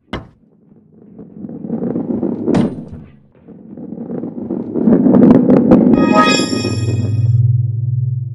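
A ball rolls and rumbles along a wooden track.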